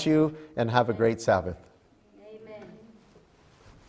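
A middle-aged man speaks clearly into a microphone.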